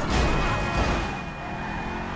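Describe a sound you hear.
Car tyres screech against the road.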